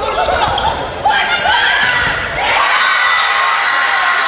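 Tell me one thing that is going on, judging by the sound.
A volleyball thuds off a player's arms.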